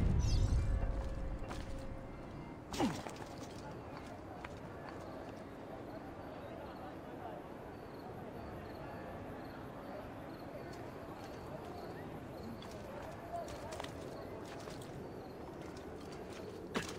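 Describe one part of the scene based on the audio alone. Footsteps patter on roof tiles.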